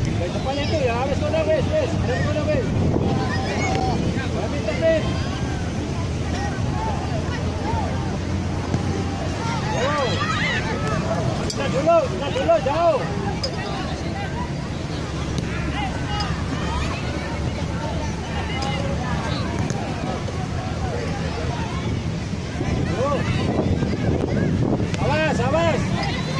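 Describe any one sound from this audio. A crowd of spectators chatters and cheers at a distance outdoors.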